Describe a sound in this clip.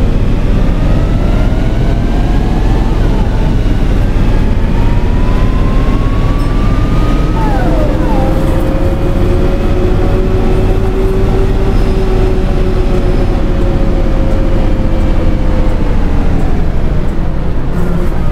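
A bus engine hums and whines steadily as the bus drives, its pitch rising and falling with speed.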